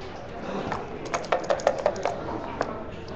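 Dice rattle and clatter in a cup.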